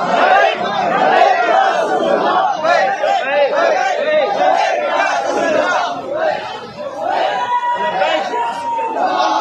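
A crowd of young men talks and chants together outdoors.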